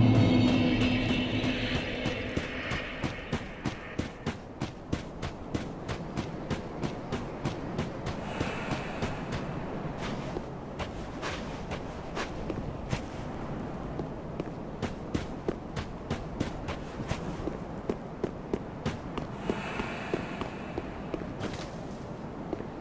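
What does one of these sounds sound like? Armoured footsteps crunch steadily over stony ground.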